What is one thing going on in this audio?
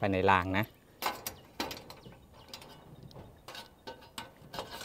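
Metal parts click and scrape together.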